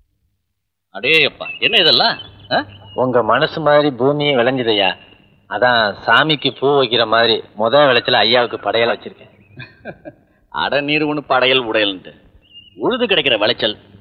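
A man speaks calmly and closely, in short phrases with pauses.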